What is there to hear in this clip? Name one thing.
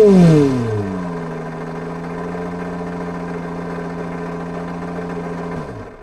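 A simulated engine idles with a steady low hum.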